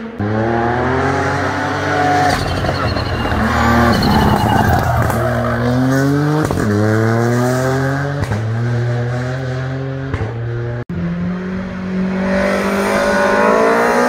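A rally car engine roars loudly, its revs climbing and dropping sharply with each gear change.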